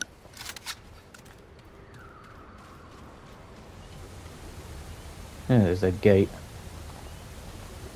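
Heavy footsteps tread on stone and wooden planks.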